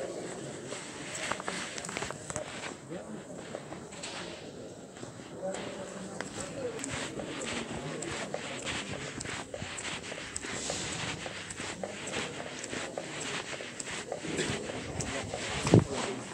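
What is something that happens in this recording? Footsteps tap and echo in a large indoor hall.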